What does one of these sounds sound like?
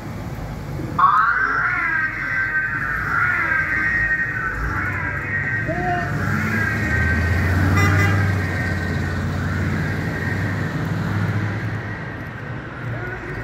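A car siren wails loudly and steadily nearby.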